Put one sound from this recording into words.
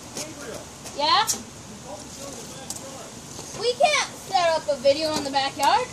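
A young boy shouts playfully nearby, outdoors.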